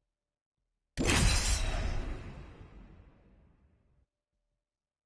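A deep whoosh swells loudly and slowly fades.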